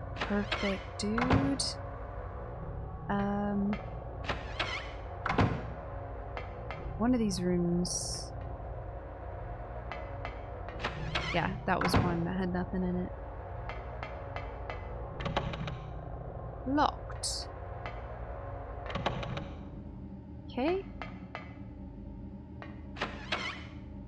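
A young woman talks close to a microphone, with animation.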